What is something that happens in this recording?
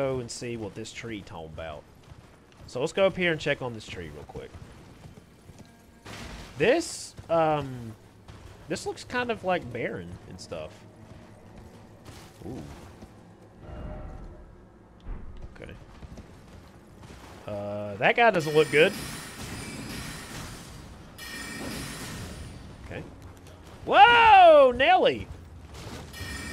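A horse gallops with quick, heavy hoofbeats.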